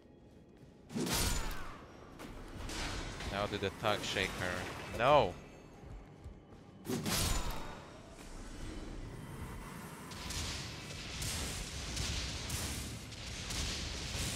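Sword blows strike with heavy thuds.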